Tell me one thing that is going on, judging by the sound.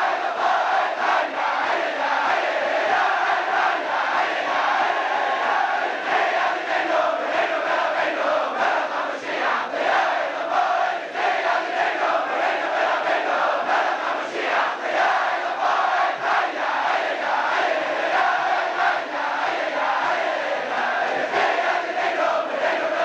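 A crowd of men sings loudly together.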